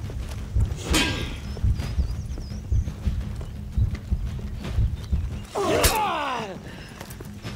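Steel blades clash with a sharp metallic ring.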